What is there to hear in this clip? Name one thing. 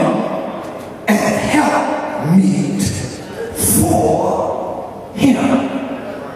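A man speaks with passion into a microphone, his voice echoing through a large hall.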